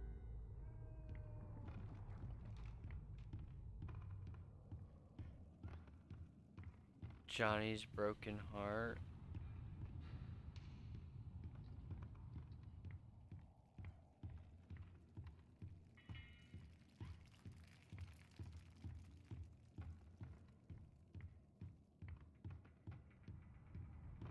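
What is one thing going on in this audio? Footsteps thud steadily on a wooden floor.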